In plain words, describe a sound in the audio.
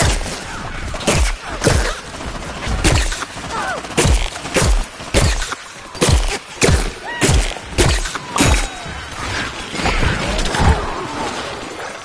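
A cannon fires heavy shots in a steady series.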